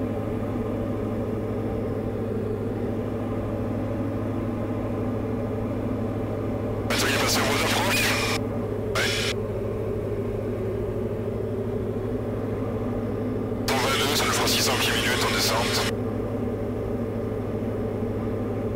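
A small plane's propeller engine drones steadily.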